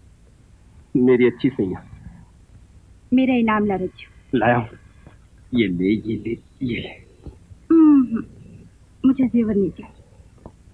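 A young woman answers softly, close by.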